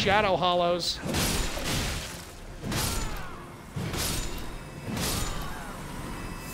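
Game weapons clang and strike in a fight.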